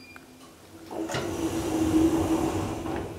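Elevator doors slide shut with a rumble.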